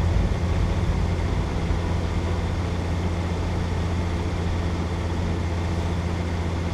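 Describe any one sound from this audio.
A heavy tank engine rumbles steadily as the tank drives forward.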